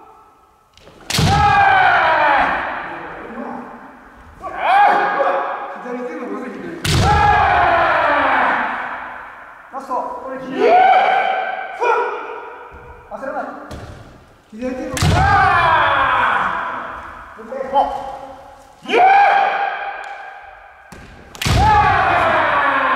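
Two fencers shout loud, drawn-out battle cries that echo through a large hall.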